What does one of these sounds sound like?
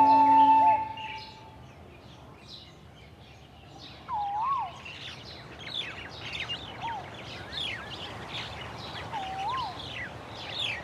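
Small birds chirp and twitter rapidly close by.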